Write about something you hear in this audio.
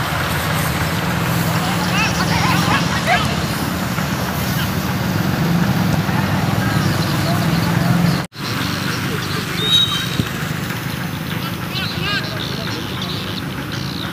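Young men shout in the distance across an open field.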